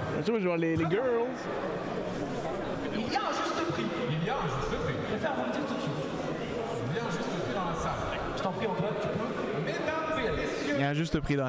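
A young man shouts excitedly close to a microphone.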